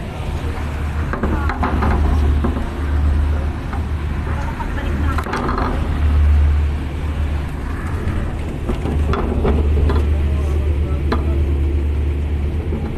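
Waves splash and wash against a ship's hull.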